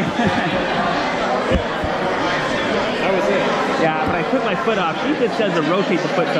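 Many people chatter and talk over each other in a large echoing hall.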